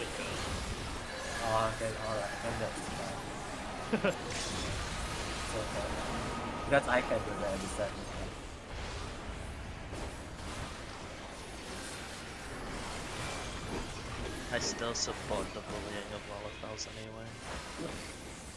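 A young man talks calmly close to a microphone.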